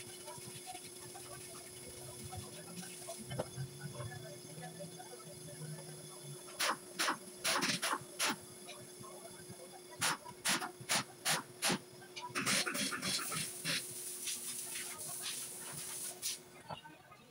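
Metal parts clank and knock sharply.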